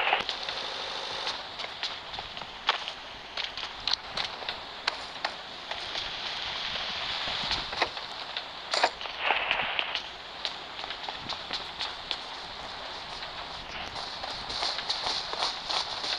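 Footsteps tread quickly over a hard floor.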